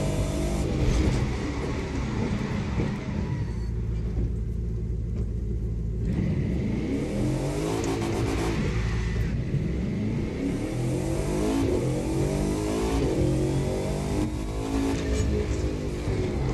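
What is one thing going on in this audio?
A powerful car engine roars and slows down, then revs up again, rising in pitch through several gear changes.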